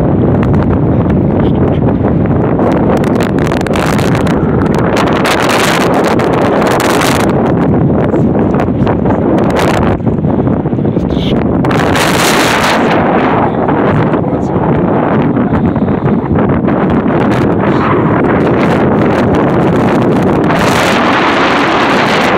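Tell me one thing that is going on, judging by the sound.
Strong wind rumbles and buffets the microphone outdoors.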